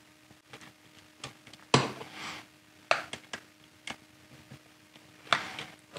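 A screwdriver turns screws into a metal bracket with faint creaks and clicks.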